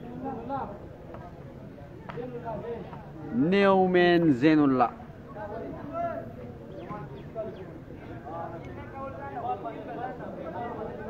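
Men talk in the background outdoors.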